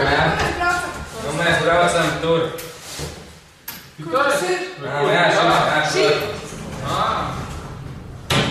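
Young men talk with each other close by.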